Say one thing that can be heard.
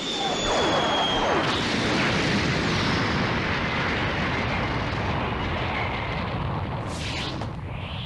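A huge explosion roars and rumbles.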